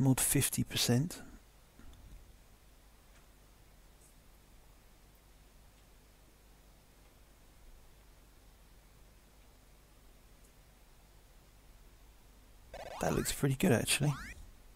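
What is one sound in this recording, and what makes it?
Bright electronic game music plays in short bursts, with a silent pause between them.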